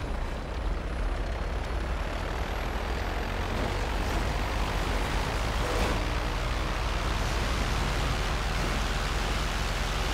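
A propeller engine idles with a steady drone.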